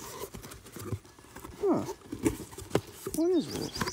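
Cardboard box flaps rustle and scrape as they are pulled open.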